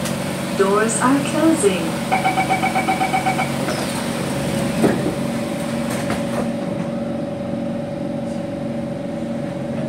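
A train's motor hums steadily.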